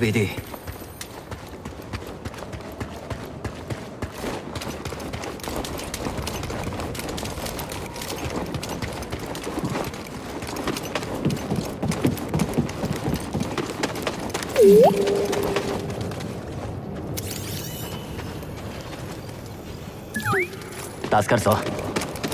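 Footsteps run on a hard floor.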